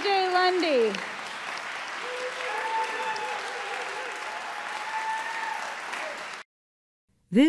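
An audience applauds and cheers in a large hall.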